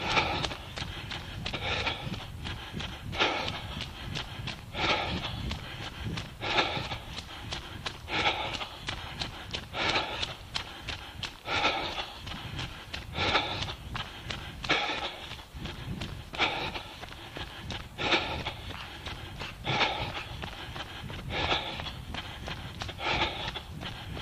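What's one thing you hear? Footsteps crunch steadily on a gritty path.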